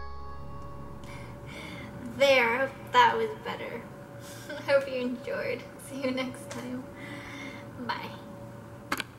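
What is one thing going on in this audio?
A young woman speaks cheerfully and close to a microphone.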